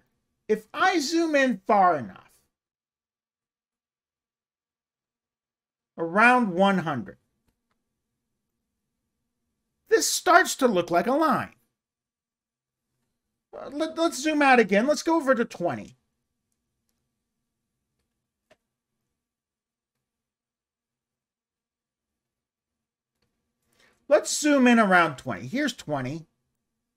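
A middle-aged man speaks calmly in short bursts into a close microphone, with pauses between.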